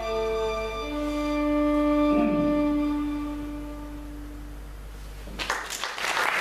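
A boy plays a sustained melody on a violin in an echoing hall.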